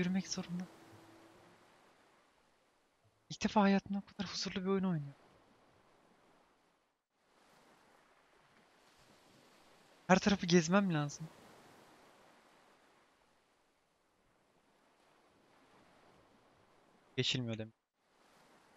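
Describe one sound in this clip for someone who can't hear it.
A young man talks with animation into a close microphone, in short bursts.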